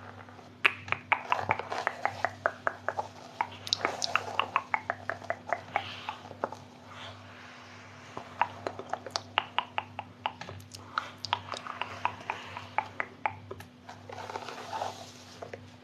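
Fingernails tap and click crisply, close by.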